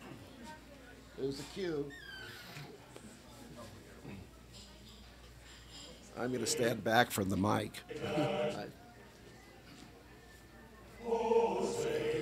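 Older men and women chat and murmur quietly.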